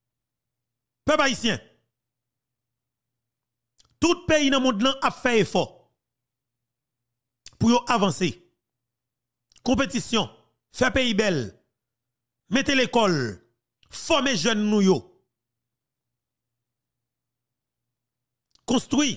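A man shouts angrily in short bursts with pauses between.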